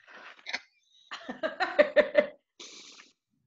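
A woman laughs loudly over an online call.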